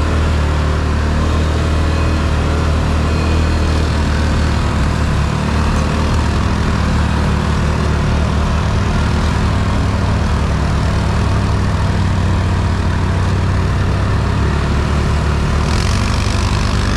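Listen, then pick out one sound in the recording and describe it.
Tyres crunch over dry brush and dirt.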